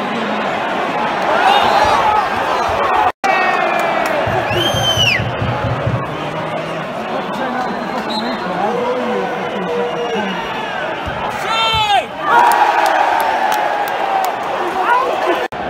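A crowd roars loudly.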